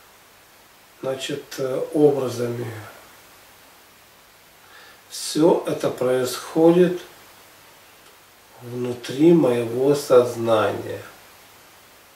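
A middle-aged man speaks slowly and calmly nearby, in short phrases with pauses.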